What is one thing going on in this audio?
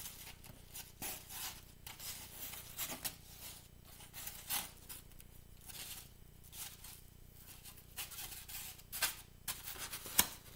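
Soft dough pats and rustles against a plate.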